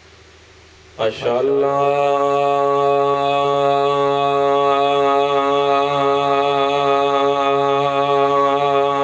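A young man chants in a long, drawn-out voice through a microphone and loudspeakers.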